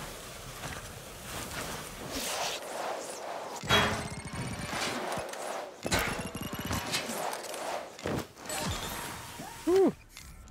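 Skis hiss and scrape over packed snow.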